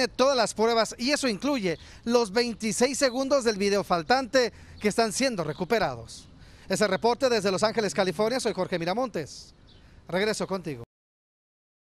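A man speaks steadily into a microphone, like a news report.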